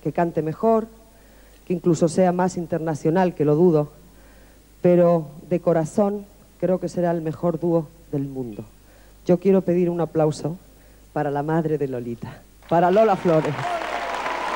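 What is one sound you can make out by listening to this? A woman sings through a microphone, with phrases broken by short pauses.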